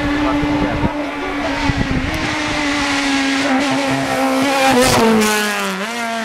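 A rally car engine roars loudly as the car speeds past close by, its pitch dropping as it passes.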